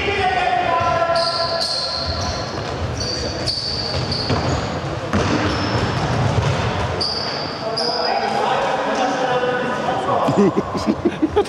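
Children shout and call out across an echoing hall.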